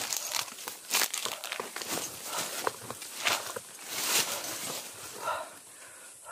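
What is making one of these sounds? Leaves and branches rustle and crackle close by as a man pushes through them.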